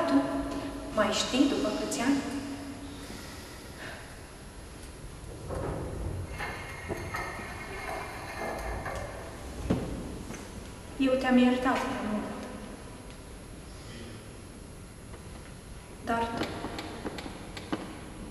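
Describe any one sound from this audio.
A woman recites poetry expressively, with pauses between lines.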